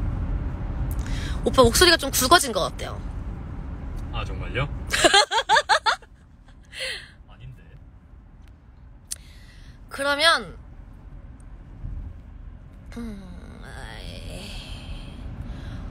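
A young woman talks softly close to a phone's microphone.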